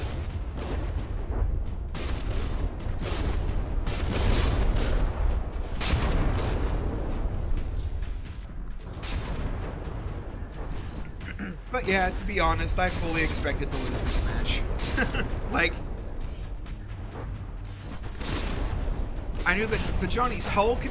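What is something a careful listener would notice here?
Explosions boom and rumble in rapid bursts.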